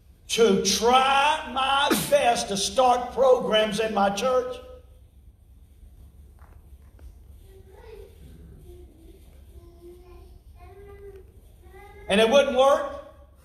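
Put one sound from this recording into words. An older man speaks loudly with animation in a large echoing hall.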